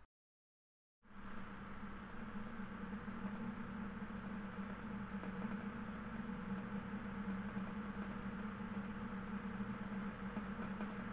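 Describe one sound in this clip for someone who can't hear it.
A man hums a long, steady low note close by.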